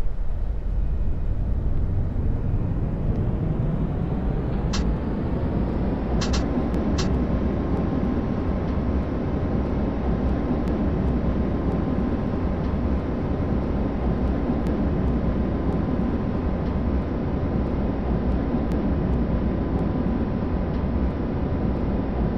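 An electric tram motor whines, rising in pitch as it speeds up.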